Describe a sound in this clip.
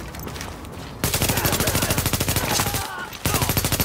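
Rapid gunfire bursts out loudly.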